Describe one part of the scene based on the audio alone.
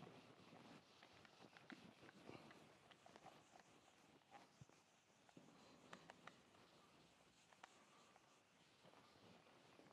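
A board eraser rubs across a whiteboard.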